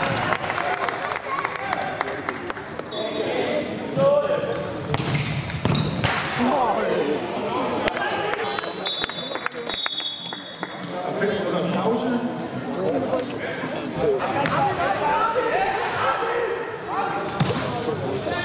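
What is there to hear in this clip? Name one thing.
Sneakers squeak sharply on the hall floor.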